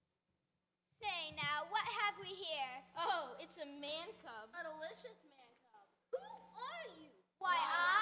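Children speak loudly through a microphone, one after another.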